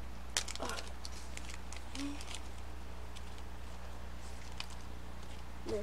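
Plastic packaging crinkles and rustles in handling.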